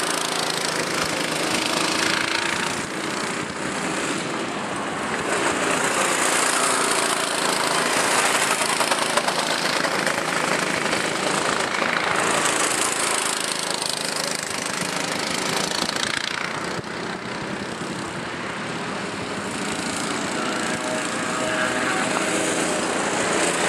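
Go-kart engines buzz loudly as karts race past, close by and far off.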